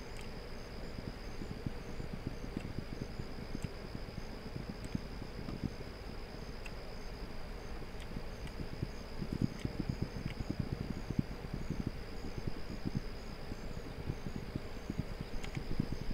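Footsteps crunch over rocky ground.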